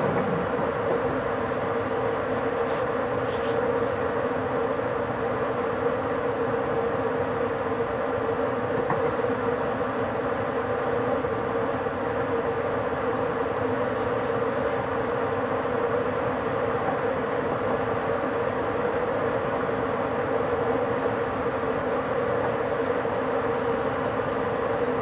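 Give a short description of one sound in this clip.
A train rumbles steadily along the rails at speed.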